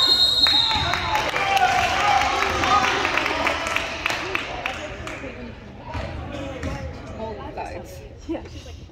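Sneakers squeak on a wooden court in a large echoing gym.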